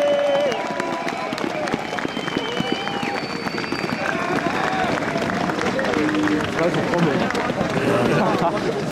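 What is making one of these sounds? A large crowd of people chatters and calls out all around, outdoors.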